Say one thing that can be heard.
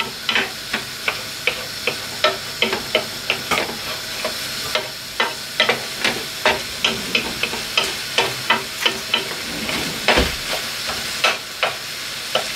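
A wooden spoon scrapes and taps against a pan in quick repeated strokes.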